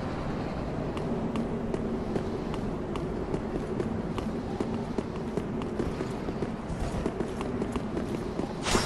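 Armoured footsteps clatter quickly on stone.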